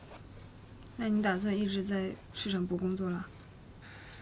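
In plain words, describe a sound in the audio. A young woman speaks quietly and calmly up close.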